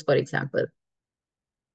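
A young woman speaks calmly through a microphone, as on an online call.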